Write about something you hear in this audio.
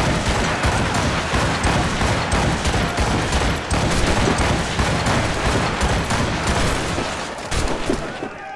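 A heavy gun fires in rapid, rattling bursts.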